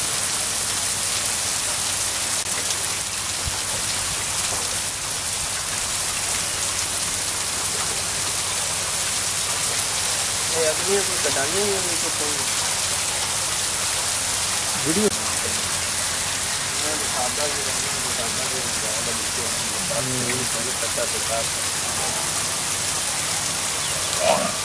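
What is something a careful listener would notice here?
Water sprays and splashes steadily onto buffaloes.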